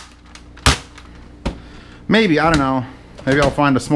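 A plastic toy blaster clatters into a cardboard box.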